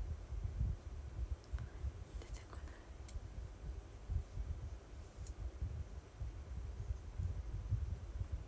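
A young woman talks quietly and casually, close to the microphone.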